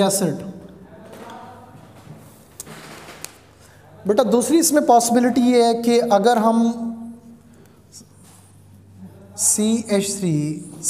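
A man lectures with animation, close by.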